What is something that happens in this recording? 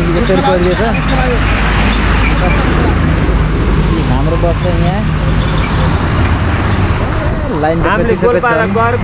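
Heavy truck and bus engines rumble close by on a road.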